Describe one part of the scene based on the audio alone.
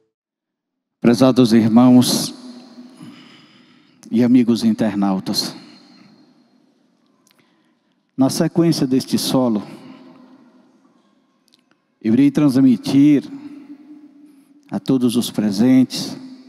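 A man speaks with animation through a microphone, in loud bursts with pauses.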